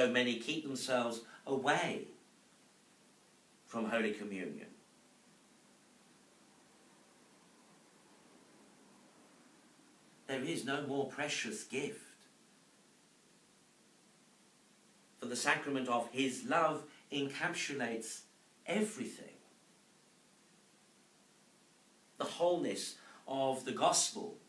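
A middle-aged man speaks calmly into a microphone, pausing between phrases.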